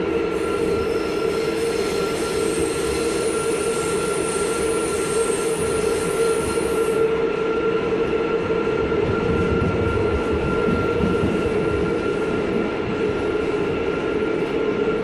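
A subway train hums and rumbles as it runs, heard from inside the car.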